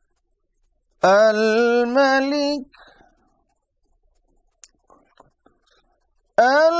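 A man chants in a melodic voice, close to a microphone.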